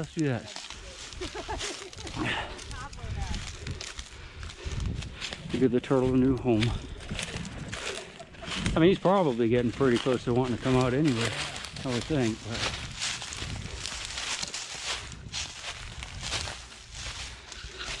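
Footsteps crunch through dry grass and leaves.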